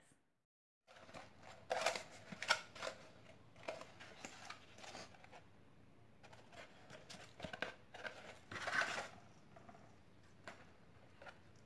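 Paper crinkles and rustles in someone's hands.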